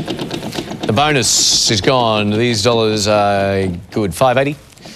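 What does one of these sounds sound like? A prize wheel spins with rapid clicking.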